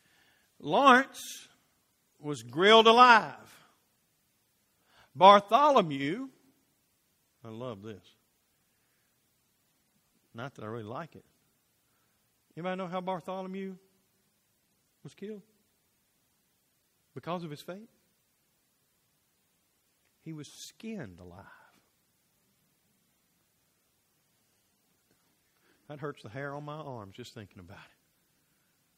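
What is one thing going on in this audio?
A middle-aged man speaks with animation into a microphone, in bursts with pauses, in a large echoing room.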